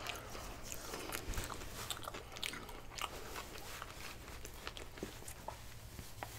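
Cloth rustles as a man wipes his hands with a napkin.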